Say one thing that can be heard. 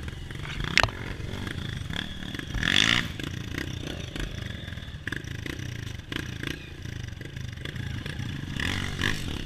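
A dirt bike engine putters and revs close by.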